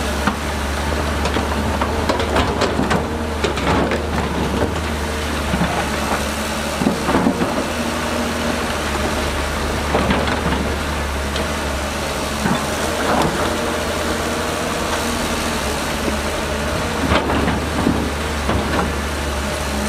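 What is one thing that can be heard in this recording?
Rocks clatter and scrape as an excavator bucket digs.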